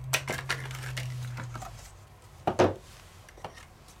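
A metal sheet taps down on a table.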